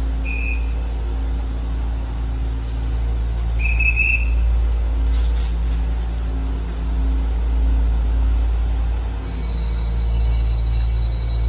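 A train rumbles slowly into an echoing underground station.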